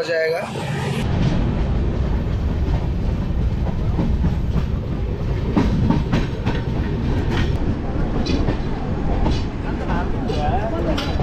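A train rumbles along the tracks at speed.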